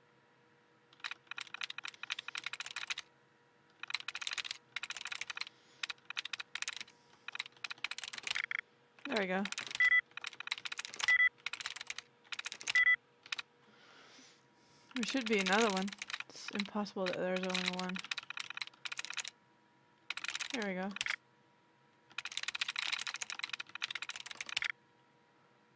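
A computer terminal chatters with rapid clicks in bursts as text prints.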